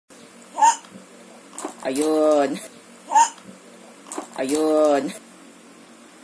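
A baby babbles and squeals loudly up close.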